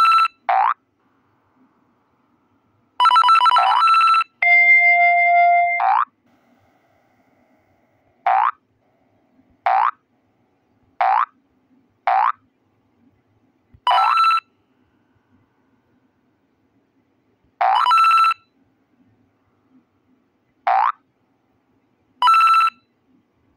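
Short, bright electronic chimes ring out again and again.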